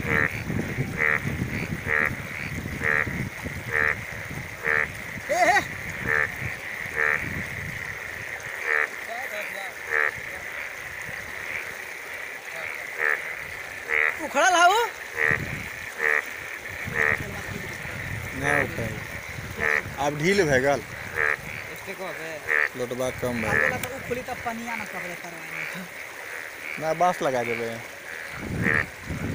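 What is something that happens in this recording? Fast floodwater rushes and churns.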